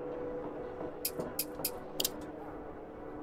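Short electronic menu clicks sound several times in quick succession.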